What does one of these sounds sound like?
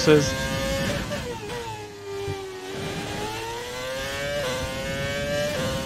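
A racing car engine whines high, its pitch dipping then rising as it shifts gears.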